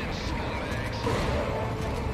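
A shotgun fires with a loud blast.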